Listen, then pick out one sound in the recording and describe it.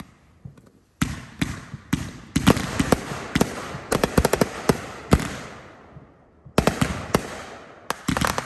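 Fireworks crackle and fizz after bursting.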